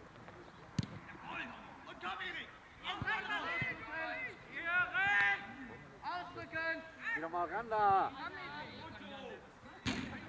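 Men shout to each other across an open pitch.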